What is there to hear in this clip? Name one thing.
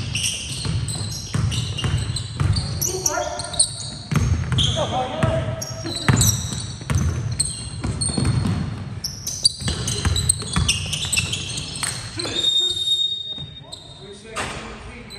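Players' footsteps thud across a gym that echoes.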